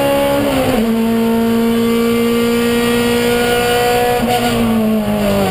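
A race car engine roars loudly from inside the cabin, its pitch shifting with gear changes.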